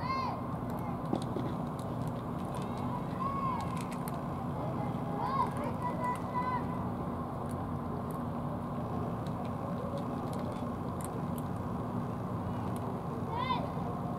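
Cats chew and lap food up close.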